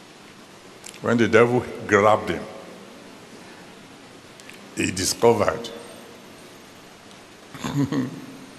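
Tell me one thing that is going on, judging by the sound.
An older man speaks emphatically in short bursts with long pauses.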